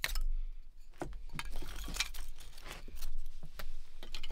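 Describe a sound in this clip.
Split sticks of wood clatter as a hand gathers them.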